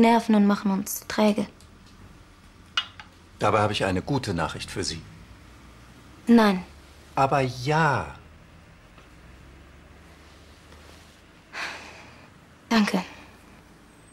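A young woman speaks calmly and tensely close by.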